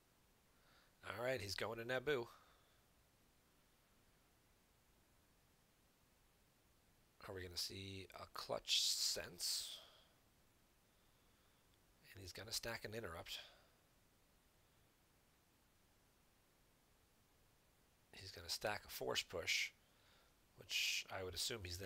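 A young man speaks calmly in short bursts, close to a microphone.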